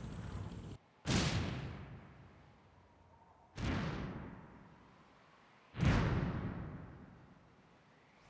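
A flying battleship explodes with heavy booms in a video game.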